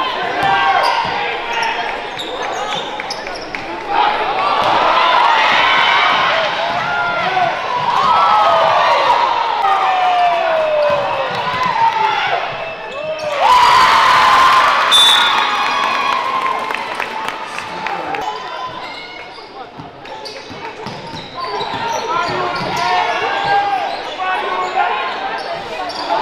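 Spectators murmur and call out in an echoing gym.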